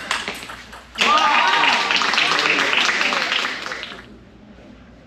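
Spectators cheer and shout in a large hall.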